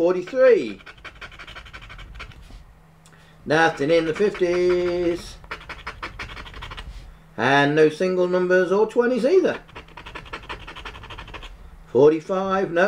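A man talks animatedly close to a microphone.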